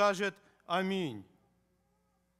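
An elderly man speaks in a drawn-out, chanting voice through a microphone.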